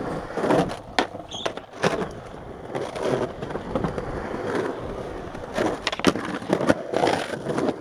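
Skateboard wheels roll and grind on concrete.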